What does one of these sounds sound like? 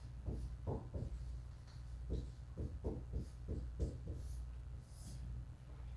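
A marker squeaks on a whiteboard in short strokes.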